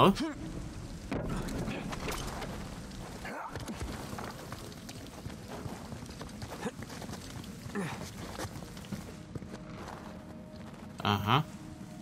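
Footsteps crunch on snowy stone.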